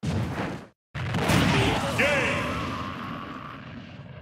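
A booming end-of-match effect sounds and slowly fades.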